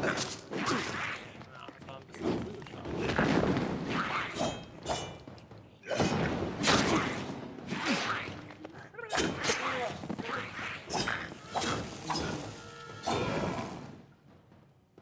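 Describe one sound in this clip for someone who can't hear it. Swords clash and slash in a loud fight.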